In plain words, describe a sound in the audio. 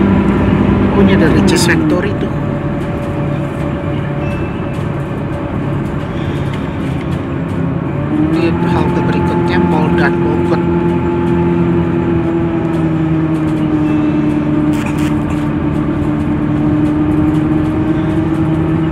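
A bus engine hums steadily from inside, its pitch falling and rising as the bus slows and speeds up.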